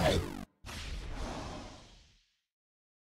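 A video game's sound effects crash and whoosh, then fade.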